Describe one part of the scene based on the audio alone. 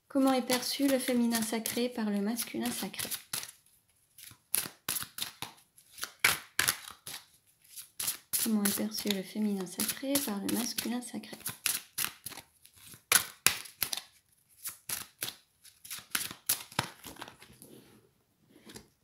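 Playing cards are shuffled with quick, soft flicks.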